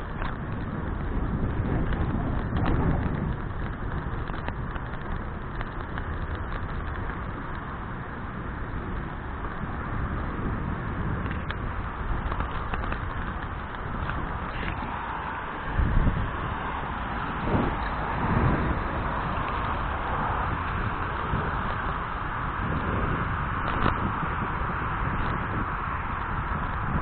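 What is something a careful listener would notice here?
Wind rumbles steadily past, outdoors on a moving bicycle.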